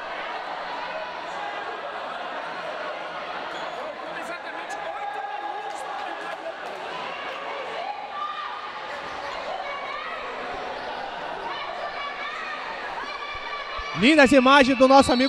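A large crowd chatters and cheers in an echoing indoor hall.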